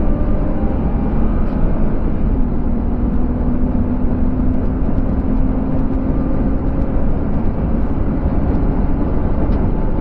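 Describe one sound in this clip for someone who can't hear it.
Wind rushes loudly past the car.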